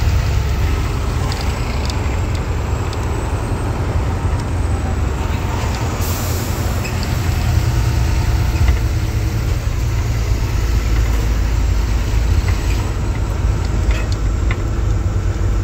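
Other trucks roar past close by.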